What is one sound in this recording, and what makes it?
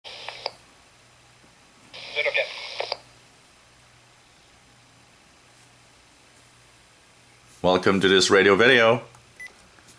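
A radio scanner gives out short bursts of transmissions through its small speaker.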